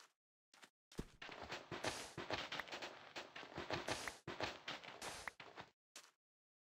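Sand blocks crumble and break with rapid scraping.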